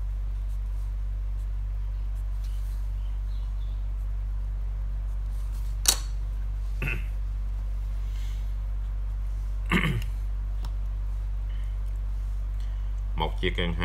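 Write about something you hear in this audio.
A marker pen scratches on paper.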